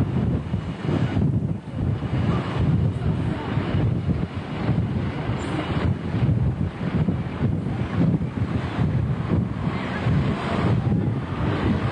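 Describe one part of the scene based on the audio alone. A bus engine rumbles as the bus pulls slowly past.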